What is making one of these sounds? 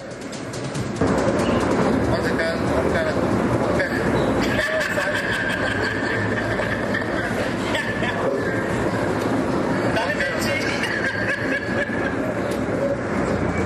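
A woman speaks steadily into a microphone, heard through a loudspeaker in an echoing room.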